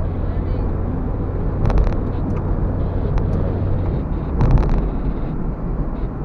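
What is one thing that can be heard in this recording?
Tyres roll steadily on a road.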